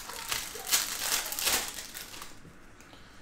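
A wrapper crinkles and tears as a pack is opened.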